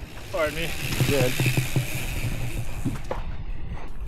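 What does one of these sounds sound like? Bicycle tyres crunch over a gravel trail.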